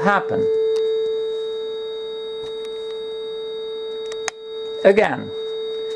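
A steady electronic test tone hums without a break.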